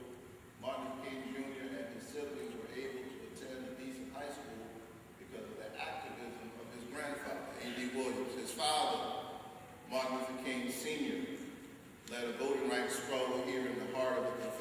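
A middle-aged man preaches with animation into a microphone.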